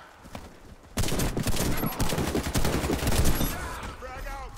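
A rifle fires rapid shots close by.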